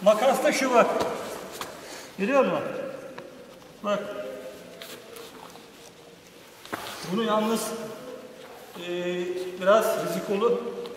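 A man speaks with animation in an echoing hall.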